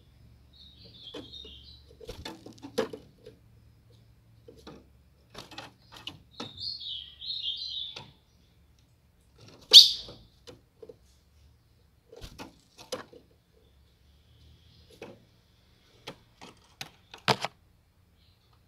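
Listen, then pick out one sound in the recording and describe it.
A bird's wings flutter as it hops and flies around a cage.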